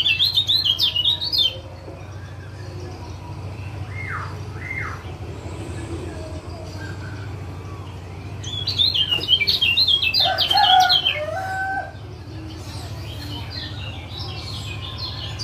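A caged songbird sings rapid, chattering bursts of high notes close by.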